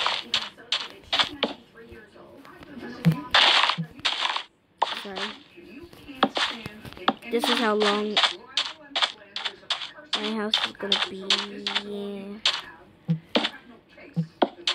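Wooden blocks are set down with short, soft knocks.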